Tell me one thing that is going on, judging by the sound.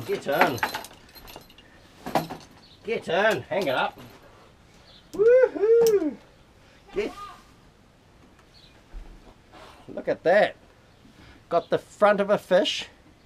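A man talks casually, close by, in bursts with pauses.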